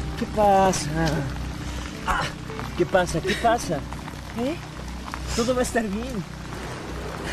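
A woman speaks emotionally close by.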